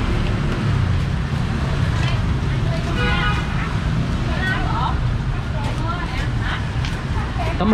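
Metal utensils clink against pots.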